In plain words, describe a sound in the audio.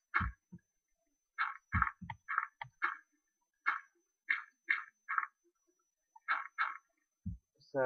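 Dirt crunches in short bursts as blocks are dug away.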